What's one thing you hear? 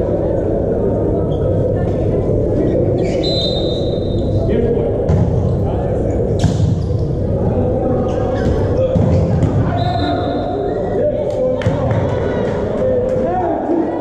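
Players strike a volleyball with their hands in a large echoing hall.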